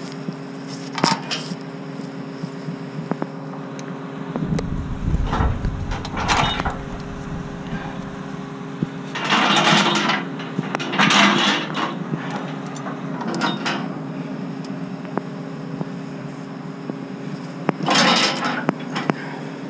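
Heavy steel chains rattle and clank against metal.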